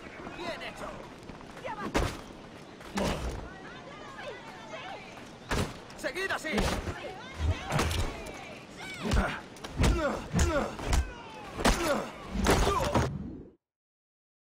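Punches land with heavy thuds during a fistfight.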